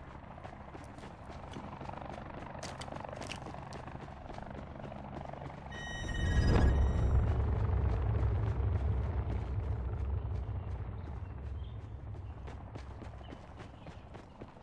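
Footsteps run through tall grass.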